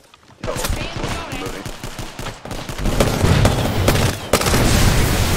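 Rapid gunfire cracks and thumps close by.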